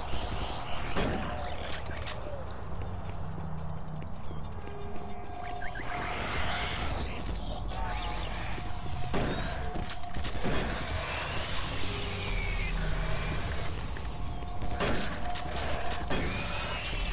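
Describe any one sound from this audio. A shotgun fires several loud blasts in an echoing metal corridor.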